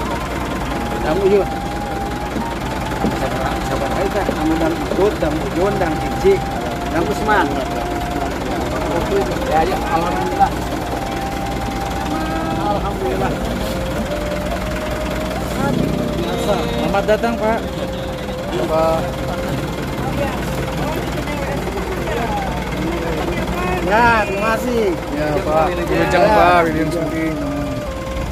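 Middle-aged men and women chat and greet each other nearby, outdoors.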